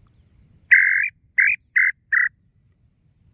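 A man blows loud, shrill whistle calls through his cupped hands, in short bursts.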